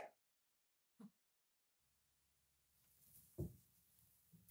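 A door opens and shuts.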